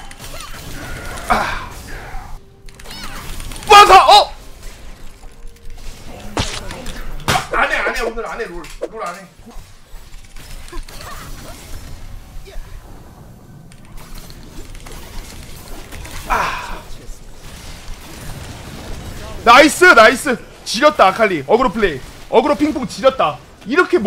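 Game sound effects clash and burst.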